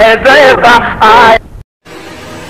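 A man chants loudly in a singing voice through a loudspeaker.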